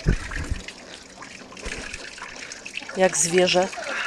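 Water splashes steadily from a spout into a stone trough.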